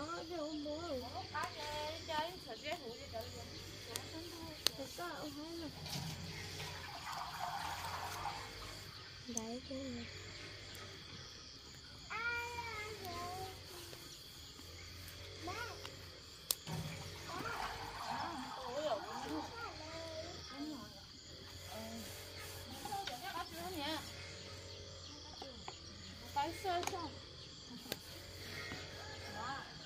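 Two women talk nearby in a relaxed way outdoors.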